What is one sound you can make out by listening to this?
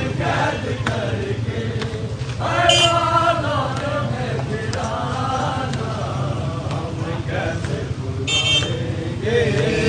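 A crowd of men chants together loudly outdoors.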